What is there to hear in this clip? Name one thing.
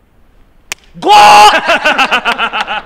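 A young man laughs loudly and shouts with excitement.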